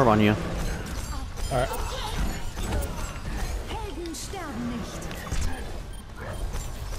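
Electronic game effects whoosh and chime.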